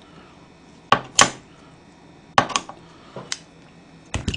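Scissors snip through food.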